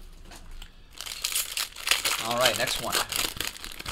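A foil wrapper crinkles and tears as it is opened.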